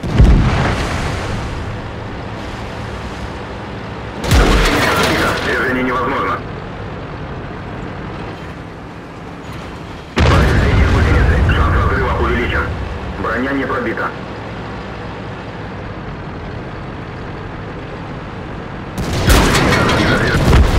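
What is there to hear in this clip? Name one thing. A tank engine rumbles low and steadily.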